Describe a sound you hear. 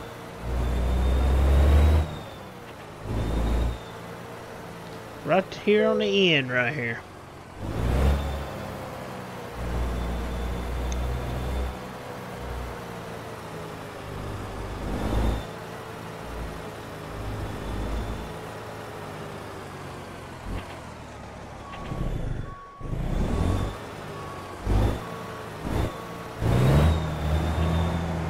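A truck engine rumbles steadily, rising and falling as the truck moves.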